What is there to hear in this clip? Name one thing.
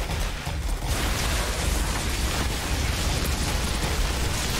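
A fiery explosion roars and crackles.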